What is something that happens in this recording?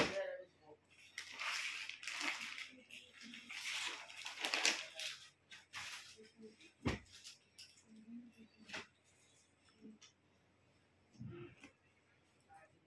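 Fabric rustles as it is unfolded and laid down.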